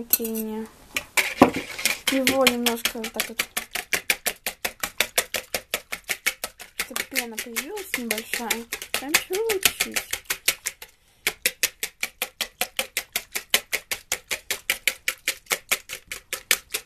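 A wire whisk beats rapidly against the side of a bowl with quick rhythmic clicks.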